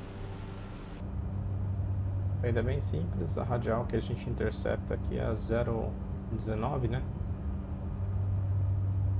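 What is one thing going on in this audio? A plane's engine hums steadily from inside the cockpit.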